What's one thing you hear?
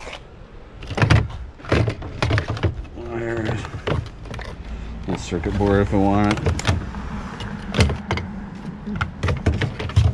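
Plastic parts clatter and knock against a plastic bucket.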